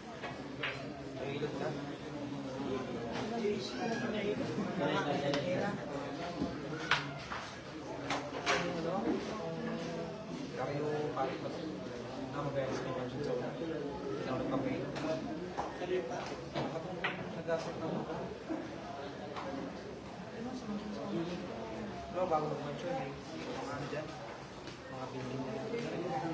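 A crowd of people chatters steadily in a busy hall.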